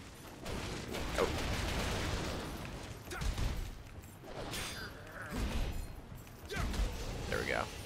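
A blade slashes and strikes repeatedly.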